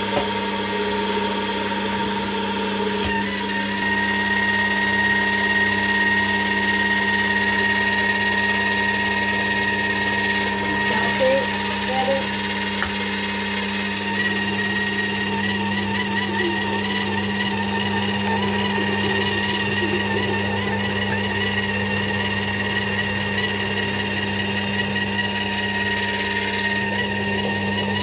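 A juicer motor hums steadily.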